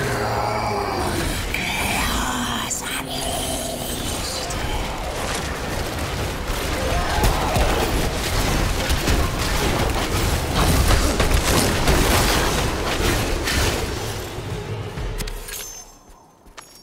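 Spells and weapons clash and burst in a fierce fight, with loud rapid impacts.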